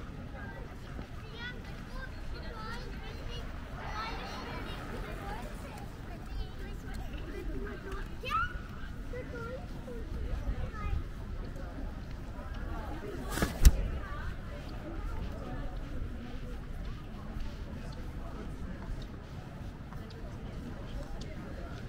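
Voices of passers-by murmur faintly in the distance outdoors.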